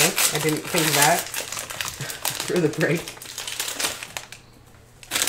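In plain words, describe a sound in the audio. Foil wrapping crinkles and tears.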